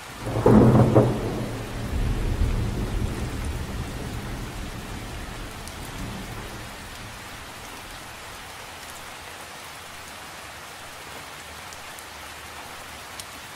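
Rain patters steadily on the surface of a lake.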